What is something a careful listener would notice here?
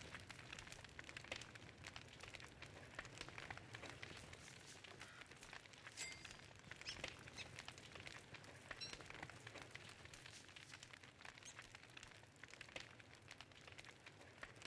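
A campfire crackles steadily.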